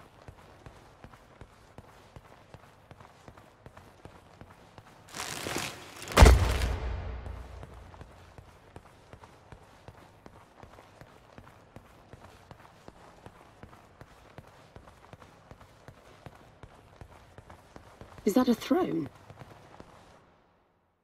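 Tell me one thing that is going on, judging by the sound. Footsteps tap steadily on a hard floor in a large echoing hall.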